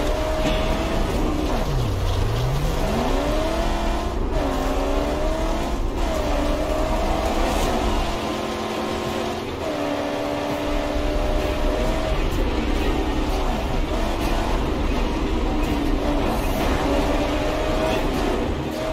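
A car engine roars and revs up and down as it races over rough ground.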